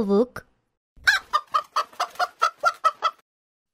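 A hen clucks quickly over and over.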